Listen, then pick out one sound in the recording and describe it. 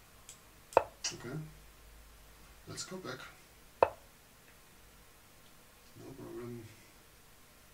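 An older man talks in short remarks close to a microphone.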